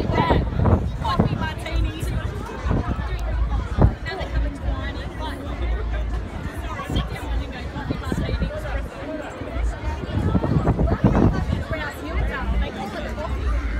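Young women laugh and talk breathlessly nearby.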